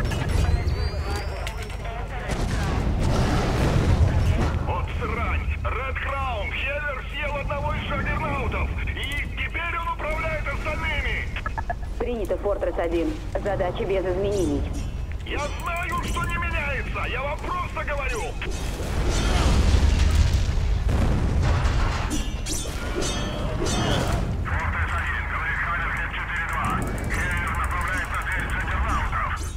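Heavy blows thud and crash during a fight.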